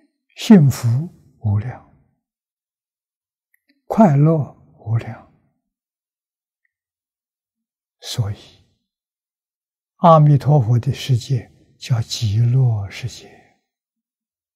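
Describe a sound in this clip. An elderly man speaks slowly and calmly in short phrases into a microphone, with long pauses.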